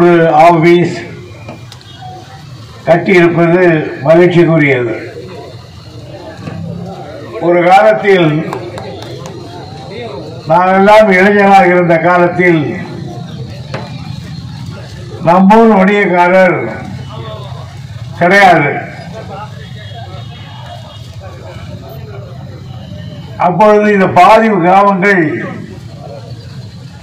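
An elderly man speaks forcefully in bursts through a loudspeaker, outdoors.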